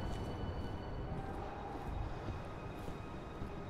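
Footsteps thud on a metal walkway.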